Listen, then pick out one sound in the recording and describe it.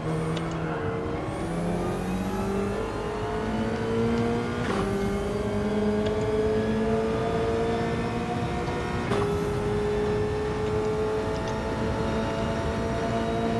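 A racing car engine roars and climbs through the gears, with sharp shifts.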